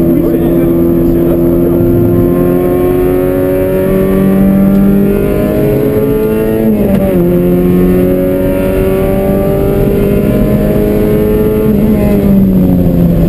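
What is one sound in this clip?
Tyres rumble on the track.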